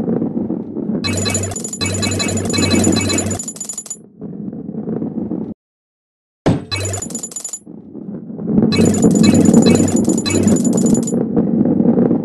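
Coins chime as they are collected.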